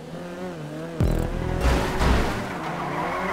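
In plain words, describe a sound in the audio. Two cars bump together with a thud.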